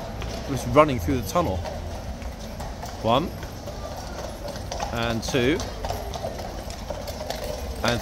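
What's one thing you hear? Horses' hooves clop slowly on stone paving.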